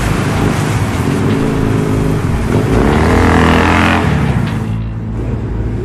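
A motorcycle engine rumbles and roars past.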